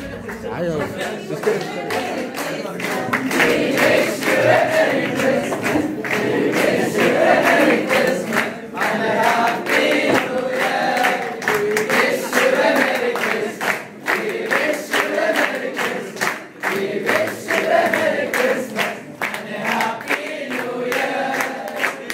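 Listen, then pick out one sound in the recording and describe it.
A group of young men sing together close by.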